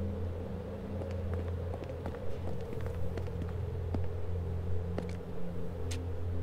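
Footsteps of hard shoes tap on a floor.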